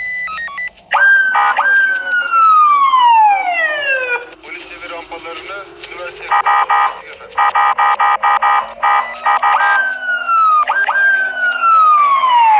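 A police siren wails in repeated falling sweeps.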